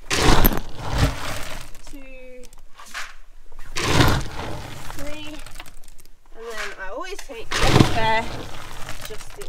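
A scoop digs into dry feed pellets with a rustling crunch.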